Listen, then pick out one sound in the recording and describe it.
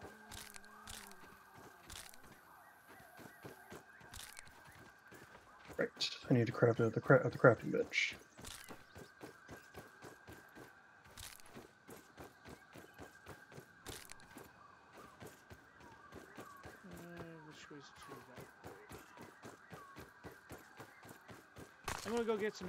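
Footsteps patter quickly and steadily over soft ground.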